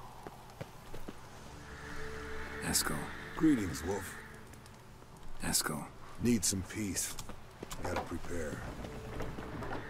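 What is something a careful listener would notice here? Footsteps tread on stone.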